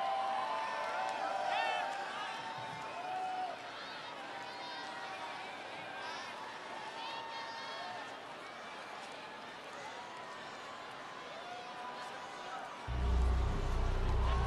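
A large outdoor crowd cheers, whistles and shouts.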